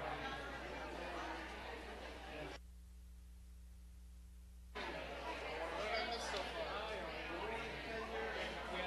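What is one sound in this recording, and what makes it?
Several men and women chat at a distance in a large echoing hall.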